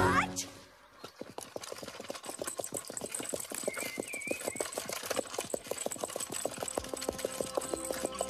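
Horse hooves clop steadily at a trot.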